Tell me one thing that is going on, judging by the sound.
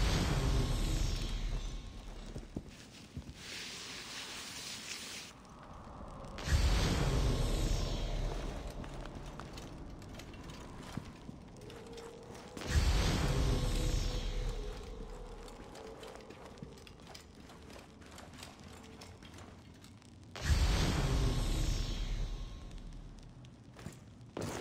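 Footsteps crunch on sand and stone.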